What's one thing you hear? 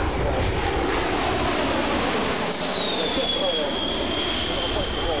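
A jet engine's whine drops sharply in pitch as an airliner passes close overhead.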